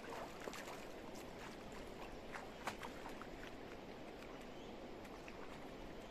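Water splashes softly at the river's edge.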